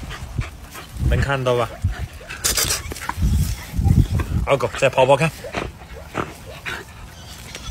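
A dog sniffs and snuffles right beside a microphone.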